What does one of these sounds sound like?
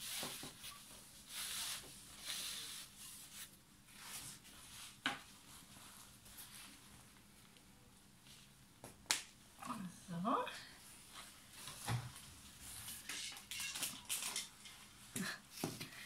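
Plastic rustles and crinkles as a play mat is handled.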